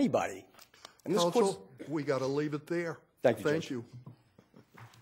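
A middle-aged man speaks calmly into a microphone in a large room.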